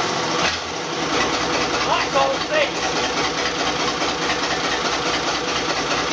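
A naturally aspirated Cummins diesel engine idles.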